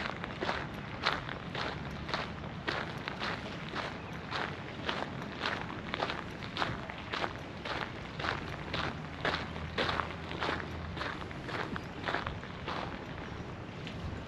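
Footsteps crunch steadily on a gravel path.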